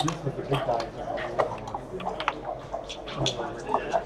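Plastic game pieces click as they are placed on a board.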